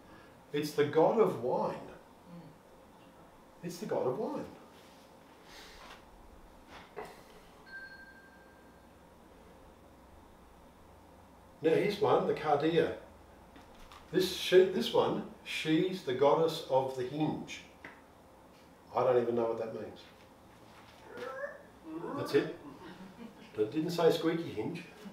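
A middle-aged man speaks calmly through a headset microphone, pausing between phrases.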